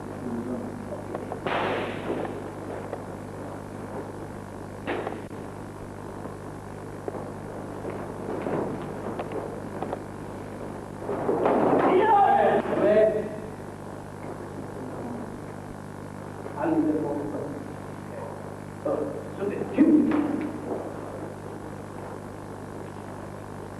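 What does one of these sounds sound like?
Bare feet thump and slide on a wooden floor.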